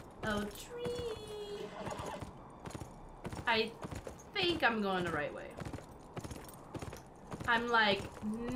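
Horse hooves thud on dry ground.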